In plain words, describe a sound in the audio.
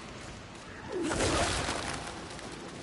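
A whip lashes with a sharp crack.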